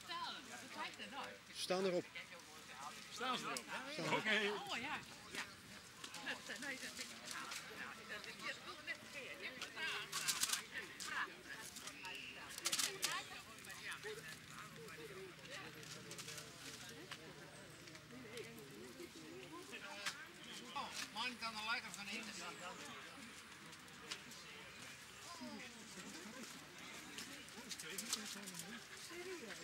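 Adult men and women chat in the background outdoors.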